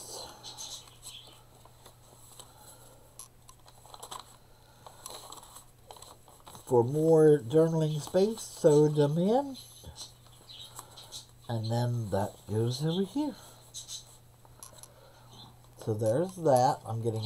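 Paper pages rustle softly as they are turned.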